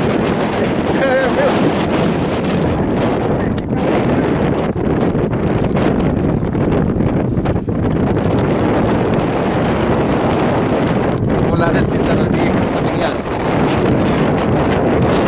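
Wind blows hard across open water.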